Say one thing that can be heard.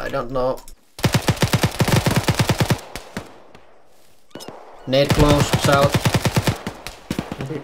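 A rifle fires rapid bursts of shots at close range.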